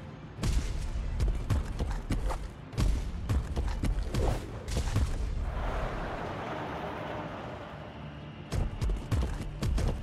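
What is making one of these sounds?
Heavy thuds ring out as a large body lands and leaps.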